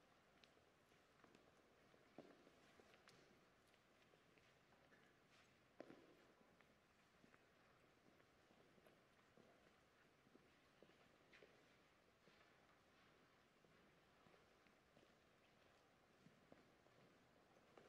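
Footsteps shuffle softly across a stone floor in a large echoing hall.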